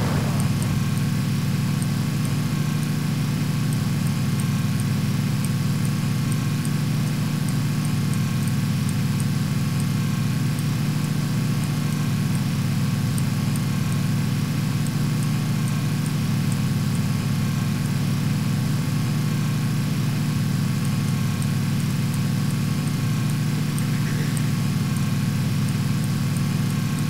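A jeep engine drones steadily as it drives.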